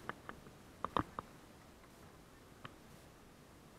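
Footsteps crunch and knock on rocks close by.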